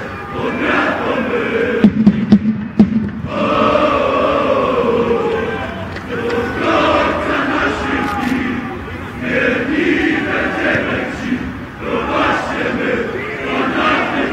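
A crowd of fans chants loudly in an open stadium.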